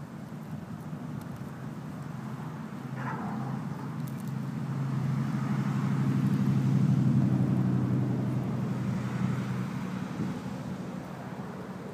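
A dog gnaws and crunches on a stick.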